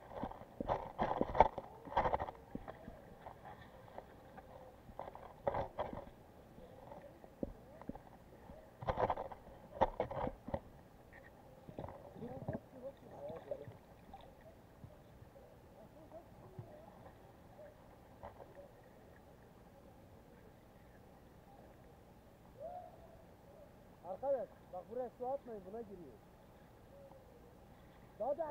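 Water gurgles and knocks, muffled underwater, in short bursts.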